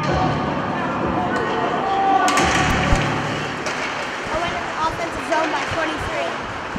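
Spectators murmur in an echoing rink.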